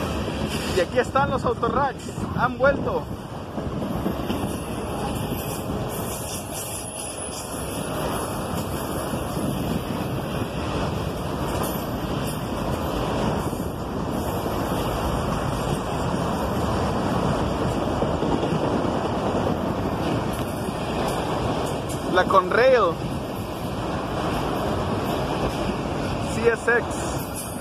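A long freight train rolls past close by with a steady rumble and clatter.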